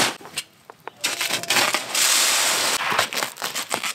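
Potting soil pours from a bag into a metal bucket.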